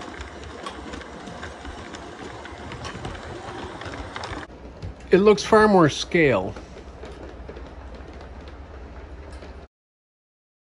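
A model train rolls and clatters along the track.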